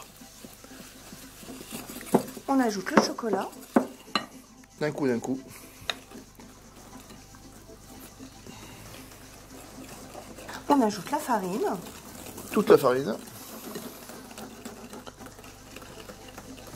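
A whisk clinks and scrapes against a glass bowl.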